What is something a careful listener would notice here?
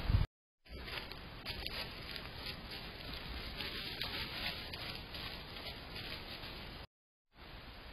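Dry leaves crunch under a deer's hooves as it walks.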